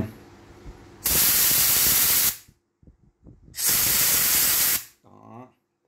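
Air hisses sharply from a tyre valve in short bursts.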